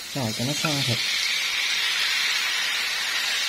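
Pork pieces drop into a hot frying pan and sizzle.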